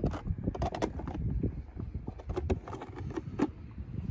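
A plastic toy trailer door clicks open.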